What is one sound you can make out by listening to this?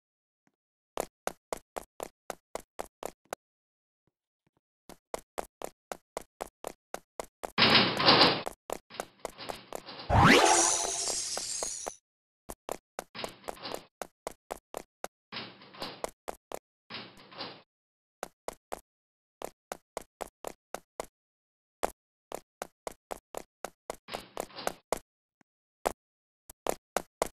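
A game character's footsteps tap quickly and evenly.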